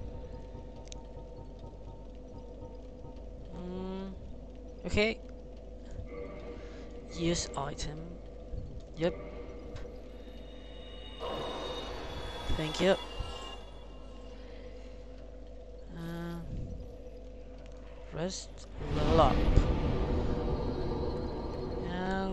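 Soft menu clicks chime as items are selected.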